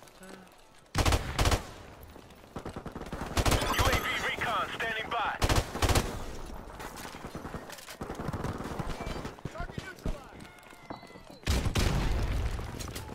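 An assault rifle fires.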